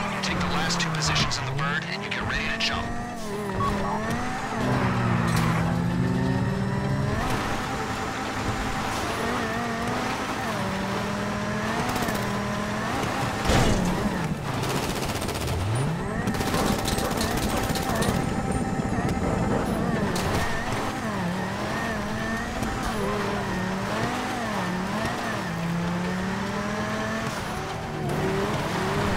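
A car engine revs and roars, rising and falling in pitch.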